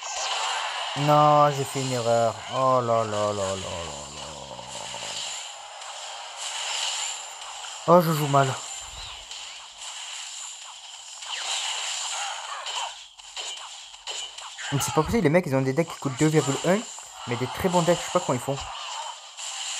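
Video game battle effects clink and chime steadily.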